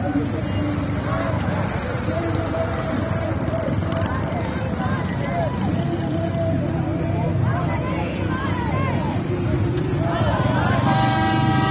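A motorcycle engine runs close by.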